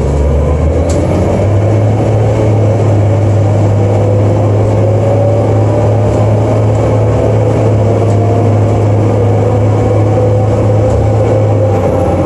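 A bus engine hums steadily with a low drone as the bus drives along.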